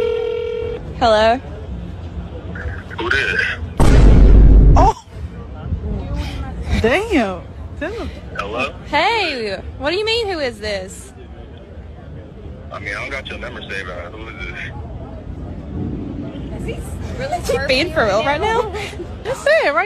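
A young woman speaks into a phone up close, casually and with some amusement.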